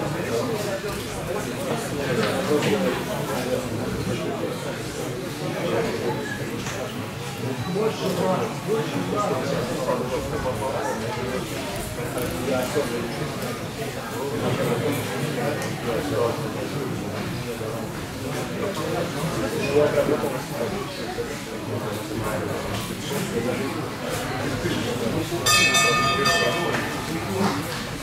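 A crowd of spectators chatters, with men's and boys' voices mixing.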